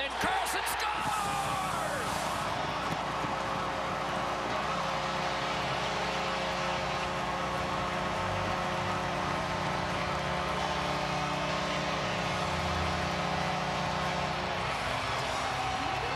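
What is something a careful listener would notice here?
A large crowd cheers and roars loudly in a big arena.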